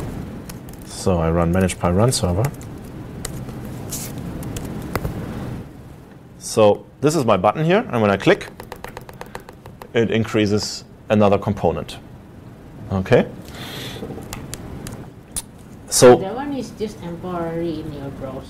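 A young man talks calmly into a microphone in short bursts.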